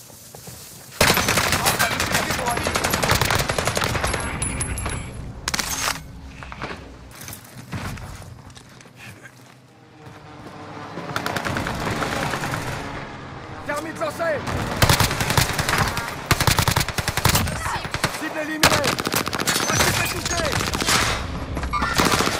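Rapid gunfire rattles in loud bursts.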